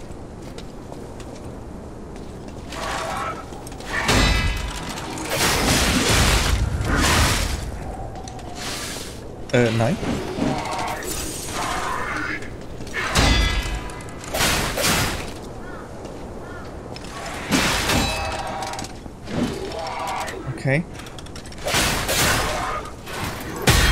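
A man talks into a microphone with animation.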